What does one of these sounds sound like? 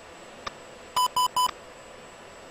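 Short electronic beeps sound from the cockpit.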